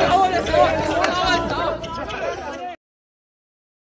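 Young men and women talk and exclaim excitedly close by.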